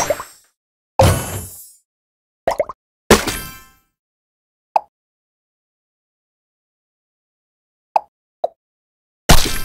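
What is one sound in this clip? Tiles pop with short clicks.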